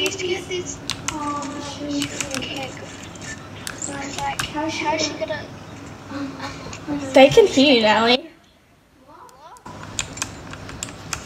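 Keyboard keys click and clatter close by.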